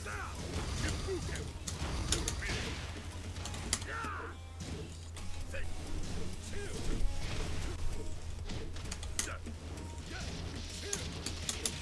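Electric crackles and whooshes burst during special attacks.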